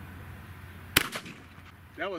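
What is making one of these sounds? A rifle fires a single loud shot outdoors.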